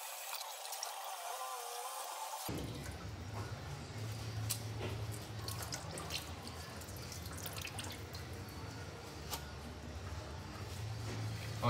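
Hands scrub and rub a wet fabric cap.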